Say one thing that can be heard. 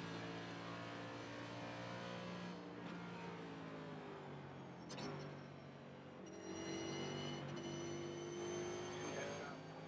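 A racing car engine hums steadily at cruising speed.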